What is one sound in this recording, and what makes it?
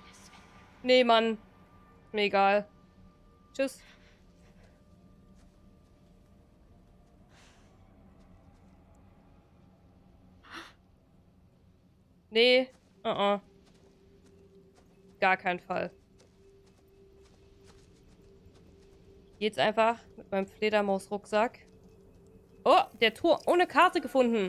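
A young woman speaks into a microphone in short bursts, with quiet pauses between them.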